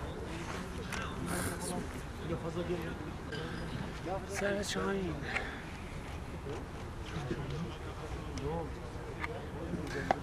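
Men talk and call out to each other at a distance, outdoors.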